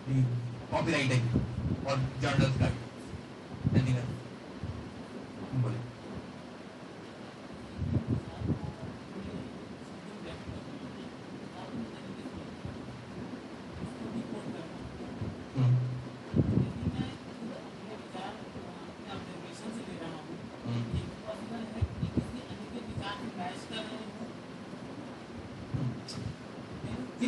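A man speaks to a group.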